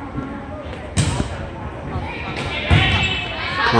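A volleyball is struck with a dull thump.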